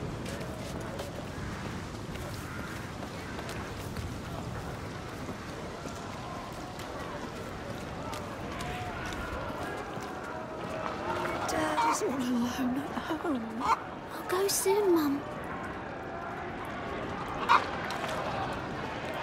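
Footsteps crunch on stone.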